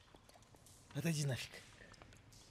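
A young man speaks briefly and calmly, close to a microphone.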